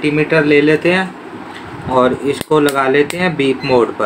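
A multimeter's rotary dial clicks as it is turned.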